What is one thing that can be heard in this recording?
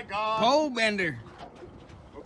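A man shouts excitedly nearby.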